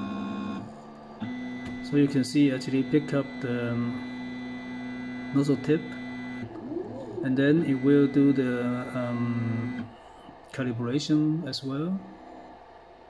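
Stepper motors of a 3D printer whine and buzz in changing tones as the print head moves.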